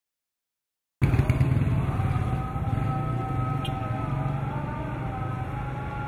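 A motorcycle engine drones nearby.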